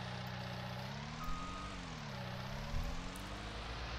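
A diesel engine revs up and down.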